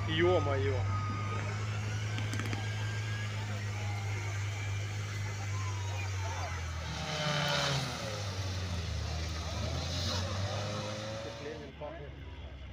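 An off-road engine roars and labours through deep mud.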